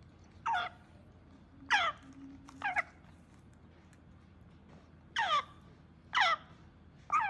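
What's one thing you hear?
A young parrot chick gives shrill, falling squawks again and again.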